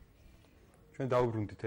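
A man speaks clearly and calmly into a nearby microphone.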